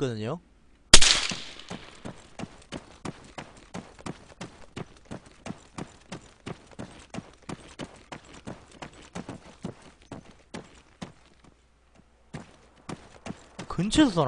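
Footsteps run quickly over dry grass and dirt.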